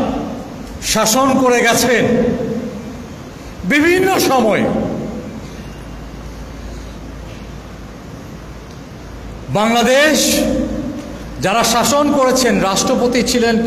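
A young man speaks forcefully into a microphone through loudspeakers, his voice echoing in a large hall.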